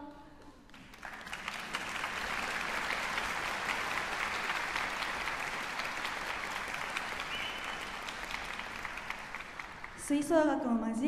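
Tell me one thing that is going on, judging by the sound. An audience applauds warmly.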